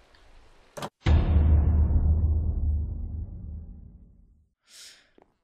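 A heavy thud booms and slowly rumbles away.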